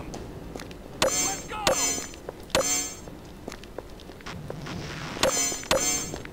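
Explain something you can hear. A pistol fires several loud shots that ring out in an echoing space.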